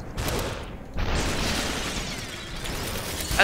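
A body shatters like breaking glass into tinkling shards.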